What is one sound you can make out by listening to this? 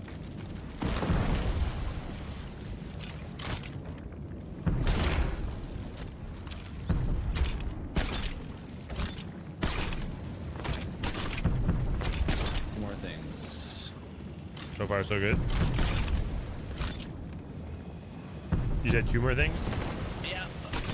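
Explosions rumble and crackle.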